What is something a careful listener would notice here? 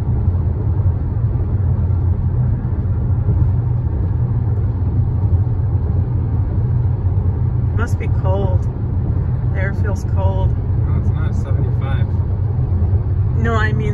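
A car's engine and tyres rumble steadily on a highway, heard from inside the car.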